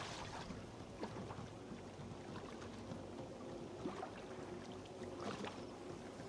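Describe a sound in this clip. Water laps gently around a swimmer at the surface.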